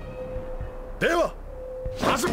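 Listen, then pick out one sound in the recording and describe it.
A young man shouts a command.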